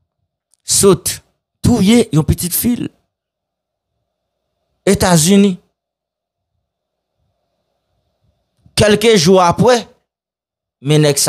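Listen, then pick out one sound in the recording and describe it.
A young man speaks close into a microphone in short, deliberate phrases with pauses.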